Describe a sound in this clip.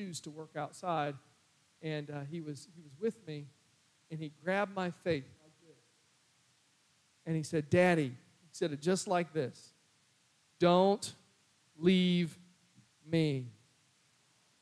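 A man speaks calmly through a microphone and loudspeakers in a large room.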